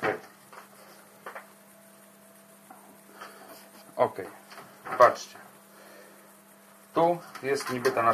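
Hands knock and click a metal assembly against a hard panel.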